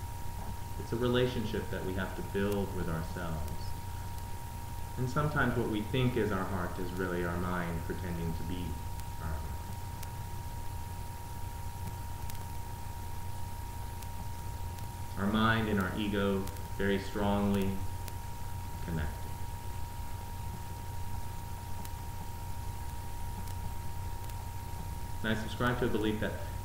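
A man speaks calmly and slowly, close by, with long pauses.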